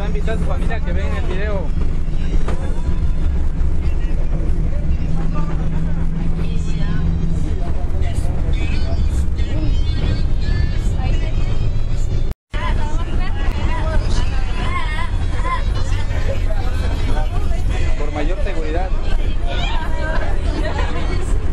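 A bus engine rumbles low and steady.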